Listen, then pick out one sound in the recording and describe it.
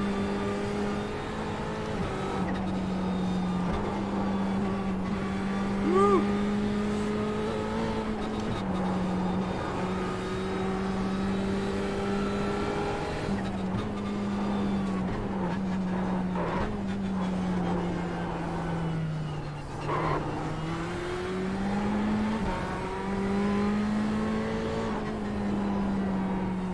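A racing car engine drones steadily, its pitch rising and dropping with gear changes.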